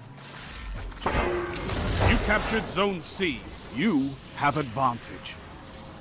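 An electric beam weapon crackles and hums as it fires.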